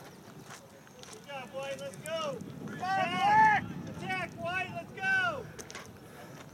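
Young players shout and call out across an open field in the distance.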